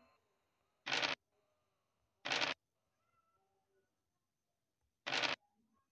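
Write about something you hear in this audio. A die rattles briefly as it is rolled, several times.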